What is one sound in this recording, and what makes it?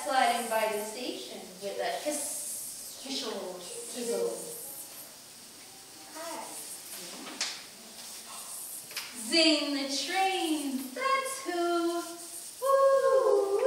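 A woman speaks gently nearby.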